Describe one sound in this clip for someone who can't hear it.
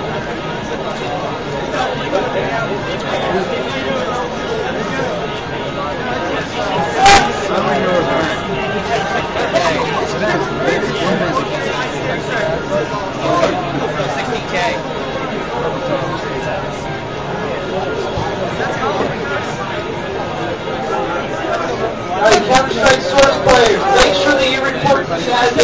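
Many people murmur and chatter in a busy room.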